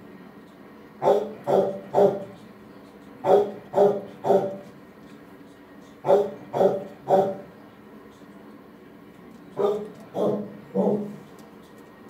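A dog barks in short bursts of three.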